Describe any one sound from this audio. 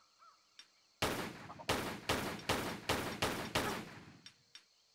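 Pistols fire in a rapid series of shots.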